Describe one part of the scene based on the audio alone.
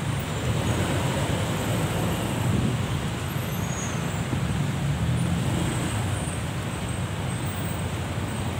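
A vehicle engine idles close by in slow traffic.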